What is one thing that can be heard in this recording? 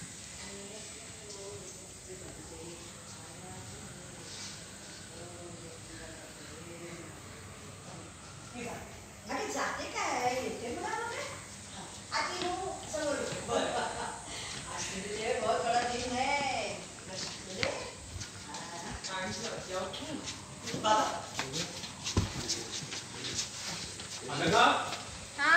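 Several men talk nearby with animation.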